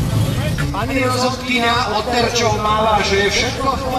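A man speaks through a loudspeaker microphone with animation.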